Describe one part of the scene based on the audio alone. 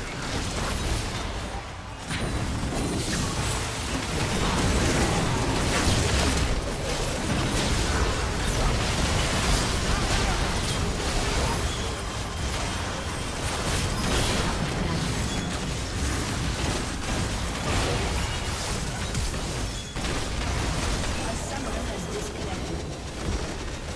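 Magic blasts, zaps and impacts crackle in a busy video game battle.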